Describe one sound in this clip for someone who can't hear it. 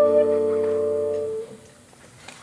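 A saxophone holds a long, loud note that ends abruptly.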